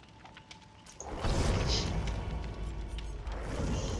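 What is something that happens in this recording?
A campfire crackles and roars.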